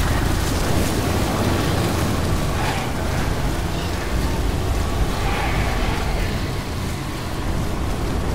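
A car engine rumbles low and steady nearby.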